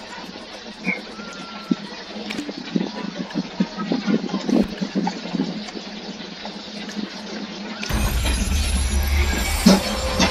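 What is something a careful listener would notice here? Soft interface clicks sound as menu buttons are pressed.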